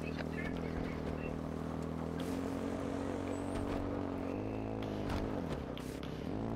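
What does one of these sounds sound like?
A motorbike engine drones and revs, its pitch rising and falling.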